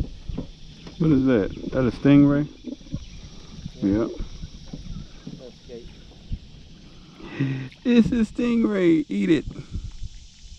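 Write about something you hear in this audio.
A man talks casually close by.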